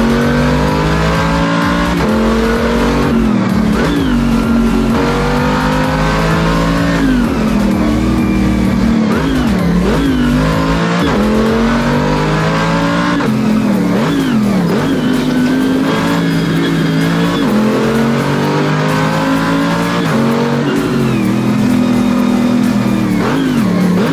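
A car engine revs hard, rising and dropping in pitch as gears change.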